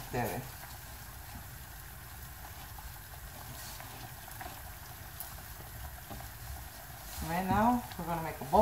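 Hands knead soft dough in a metal bowl with quiet squishing and thumping.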